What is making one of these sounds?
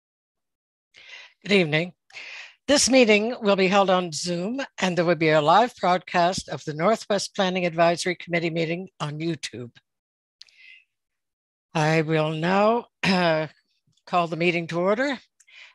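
An elderly woman speaks calmly through a headset microphone on an online call, pausing now and then.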